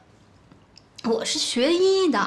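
A young woman answers calmly, close by.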